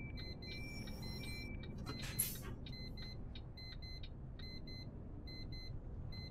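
A bus engine rumbles low and steady.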